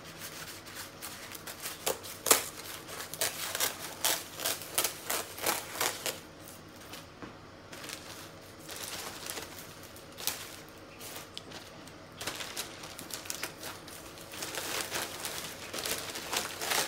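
Dry, stiff sheets rustle and crackle as they are handled.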